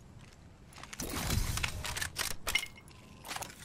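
A gun clicks and clatters as it is swapped.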